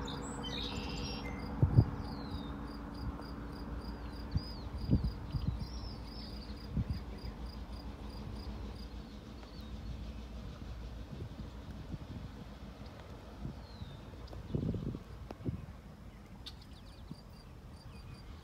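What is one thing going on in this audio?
A diesel train engine rumbles steadily in the distance.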